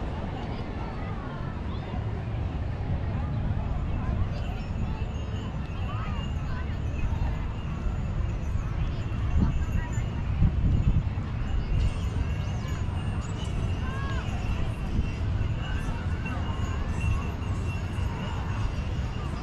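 Waves break gently on the shore in the distance.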